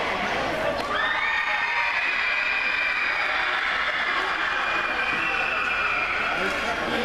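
A group of boys chants together loudly.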